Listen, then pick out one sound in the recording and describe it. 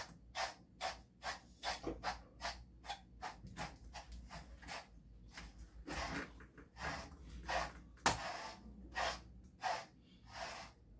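A brush rubs through a dog's fur in quick, even strokes.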